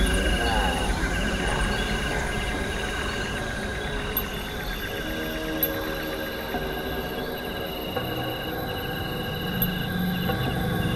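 Electronic music plays with short repeating beeping tones.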